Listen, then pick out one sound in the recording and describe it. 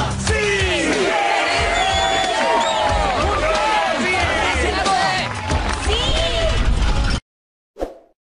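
A crowd cheers and shouts loudly with excitement.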